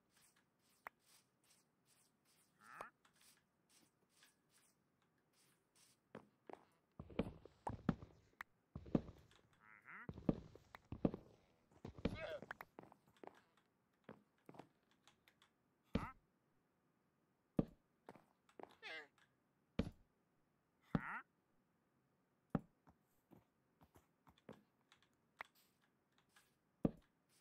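Footsteps tap on wooden and grassy ground.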